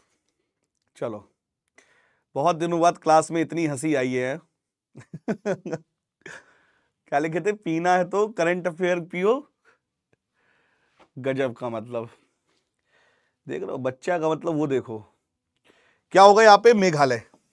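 A man speaks with animation into a close microphone, pausing between phrases.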